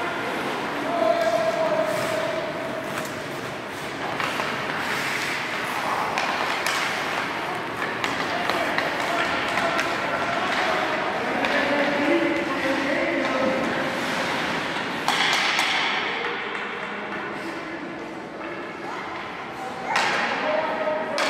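Young players shout to one another in a large echoing rink.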